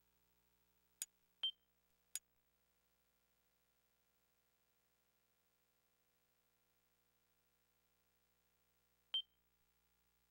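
Short electronic menu beeps sound a few times.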